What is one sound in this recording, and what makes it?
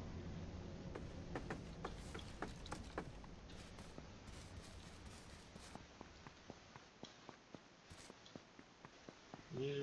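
Footsteps crunch quickly across grass and ground.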